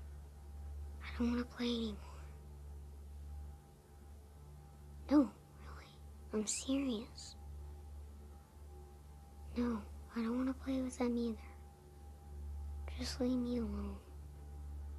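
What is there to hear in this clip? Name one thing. A young boy speaks quietly and sadly, close by.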